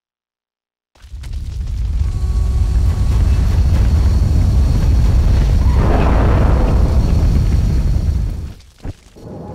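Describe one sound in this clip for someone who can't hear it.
An aircraft engine roars loudly as a craft hovers overhead.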